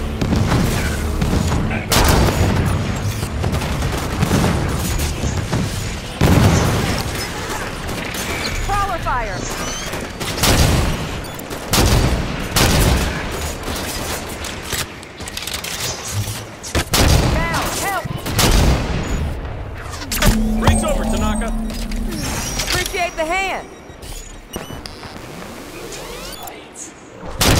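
Gunshots and laser blasts fire in quick bursts.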